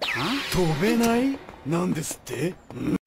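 A young man shouts in alarm.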